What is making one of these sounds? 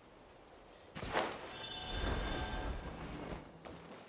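A bright chime rings out and fades.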